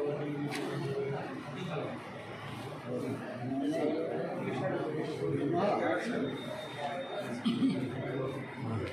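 Several elderly men talk over one another nearby in a room with some echo.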